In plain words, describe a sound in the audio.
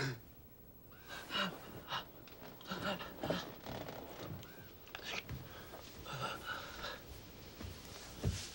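An elderly man speaks quietly.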